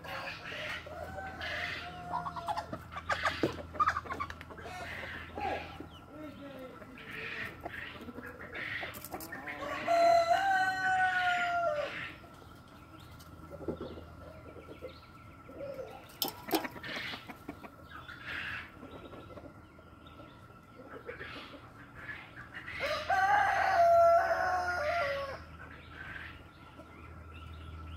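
Hens cluck and chatter softly outdoors.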